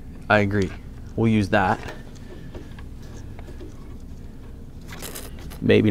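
A plastic connector clicks and rattles as hands handle it.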